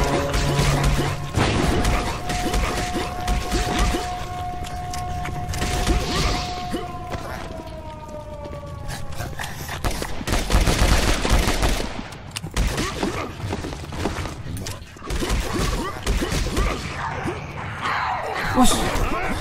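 Punches and blade strikes thud and slash in quick succession.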